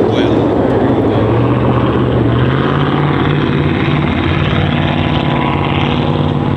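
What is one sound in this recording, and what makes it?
A race car engine roars loudly nearby.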